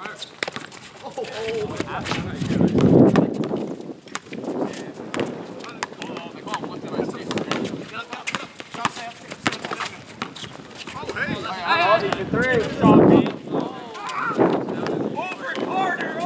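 Young men shout to each other outdoors during a game.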